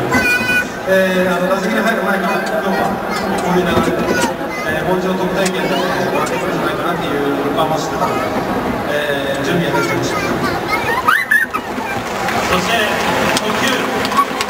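A man speaks calmly through stadium loudspeakers, echoing in a large open space.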